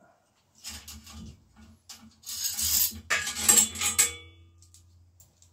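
A bicycle chain rattles and clicks.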